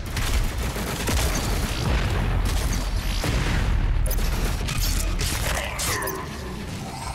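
A shotgun fires in rapid blasts.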